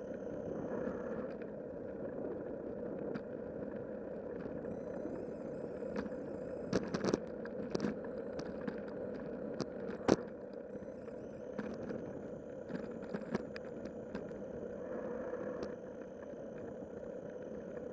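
Tyres roll steadily over a rough paved road.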